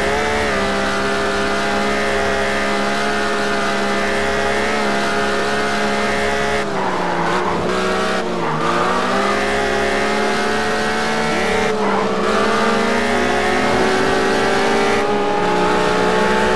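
A car engine roars steadily at high revs, dipping briefly as the gears shift.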